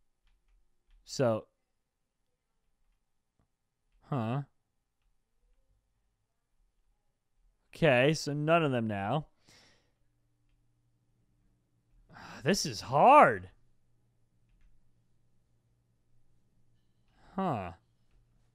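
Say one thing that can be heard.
A young man speaks in short bursts with animation into a close microphone.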